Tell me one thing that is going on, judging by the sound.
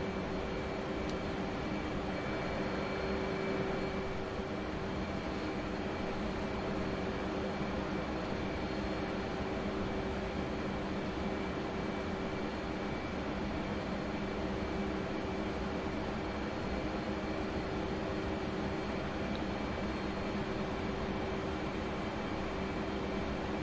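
A jet engine drones steadily with a constant whine.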